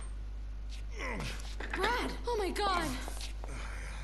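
A woman cries out in alarm.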